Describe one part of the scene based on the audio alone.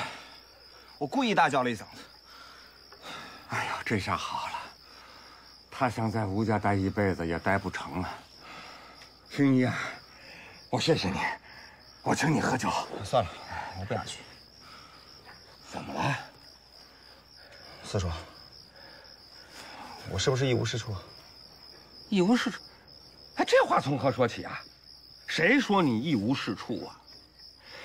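An older man talks with animation close by.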